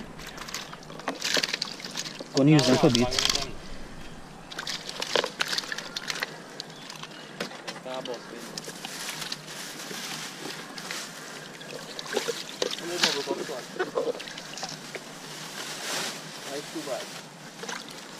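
Hands splash and slosh water in a tub.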